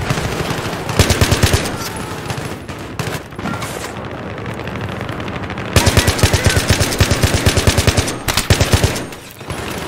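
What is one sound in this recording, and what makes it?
A rifle fires rapid bursts of shots that crack loudly.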